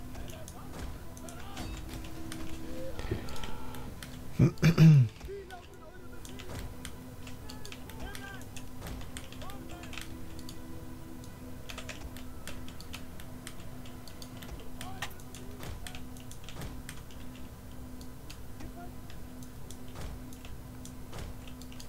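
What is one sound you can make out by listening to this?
Weapons clatter and knock.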